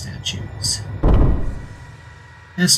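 A heavy wooden lid slides open with a thud.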